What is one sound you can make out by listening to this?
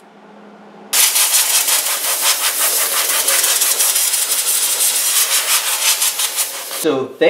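Compressed air hisses loudly from an air nozzle.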